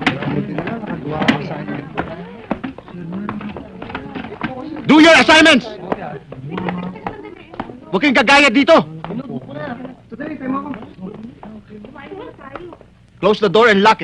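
A crowd of young people chatters and shuffles about.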